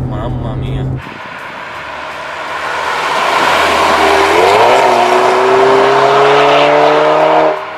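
A car approaches and roars past outdoors, its engine revving higher.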